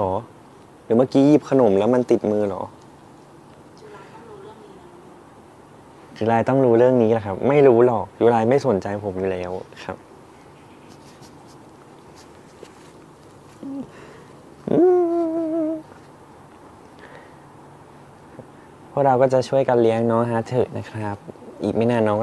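A young man talks softly and playfully, close by.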